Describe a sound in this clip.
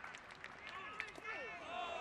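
A ball pops sharply into a catcher's mitt.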